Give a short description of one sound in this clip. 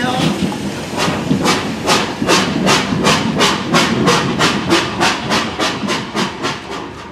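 Train wheels clack rhythmically over the rails, quickening.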